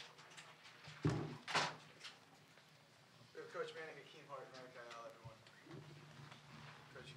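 Chairs bump and scrape as people sit down.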